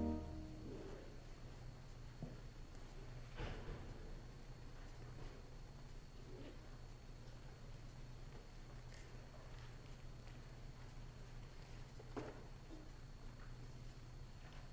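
Paper rustles softly in a person's hands.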